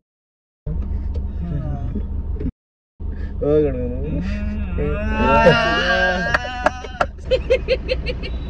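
Young men laugh loudly together up close.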